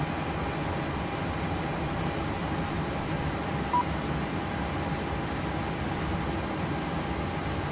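A jet engine hums steadily at idle.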